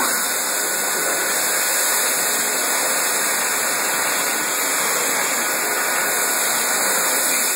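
A hand dryer blows air with a loud, steady roar.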